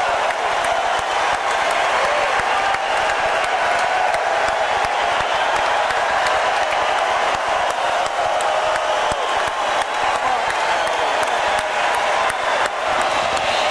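A large arena crowd cheers and roars loudly throughout.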